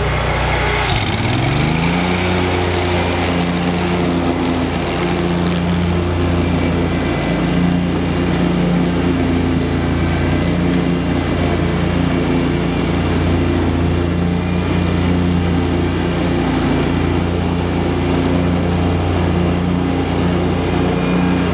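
A mower cuts through tall grass with a rushing swish.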